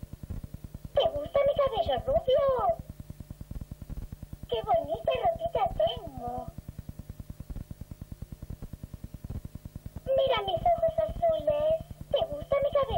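A young child's voice speaks and giggles close by.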